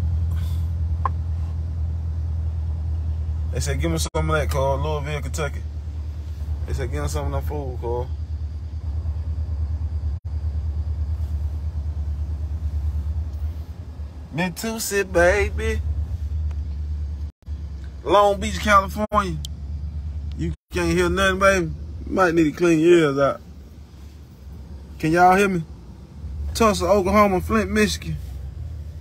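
A car engine hums steadily and low inside a vehicle.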